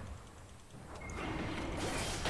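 Fantasy battle sound effects clash and crackle.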